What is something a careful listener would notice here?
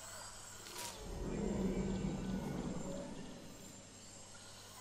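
A large dinosaur pushes through tall grass with a rustle.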